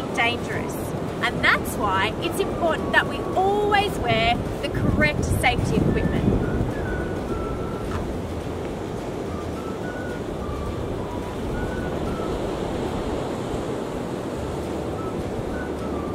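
Wind blows steadily across the open shore.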